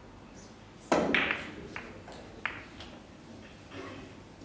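Pool balls click against each other and roll across the table.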